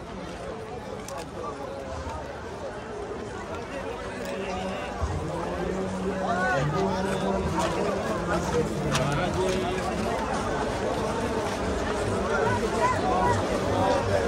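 Footsteps of many people shuffle along the street.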